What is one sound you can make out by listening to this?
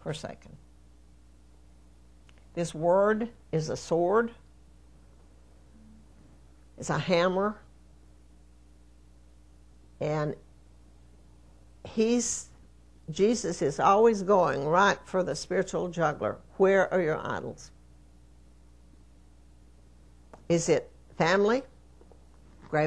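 An elderly woman speaks into a microphone in short, deliberate phrases with long pauses.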